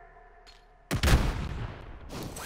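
A loud thud of a landing hits suddenly.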